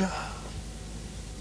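A man speaks briefly in a low voice close by.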